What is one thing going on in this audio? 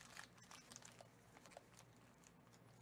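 Foil wrappers crinkle softly as they are handled.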